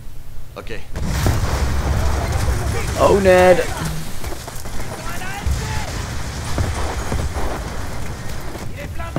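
A loud explosion booms and rumbles on.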